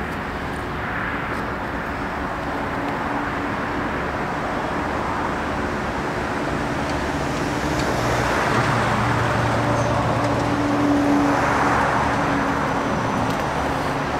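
Leaves rustle as a hedge is handled.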